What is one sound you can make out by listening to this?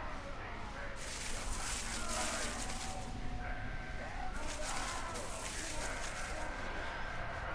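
Leaves rustle as a figure creeps through a bush.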